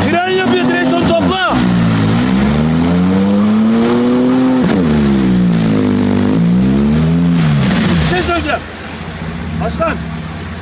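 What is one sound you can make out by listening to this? Mud and water splash and slosh around churning tyres.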